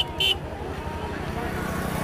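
A motorcycle engine hums as it rides past.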